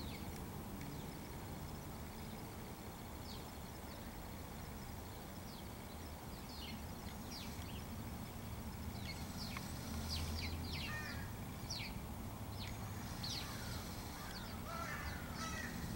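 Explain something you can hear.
A crow's feathers rustle and brush close against the microphone.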